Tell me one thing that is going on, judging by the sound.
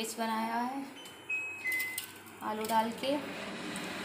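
A metal plate clatters on a stove.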